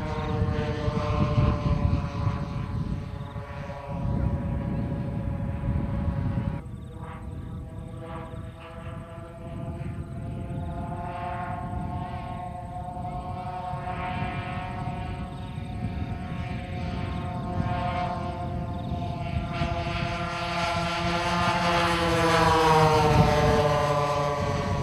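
Wind rumbles across an open field.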